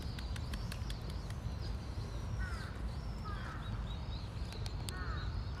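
Birds chirp nearby.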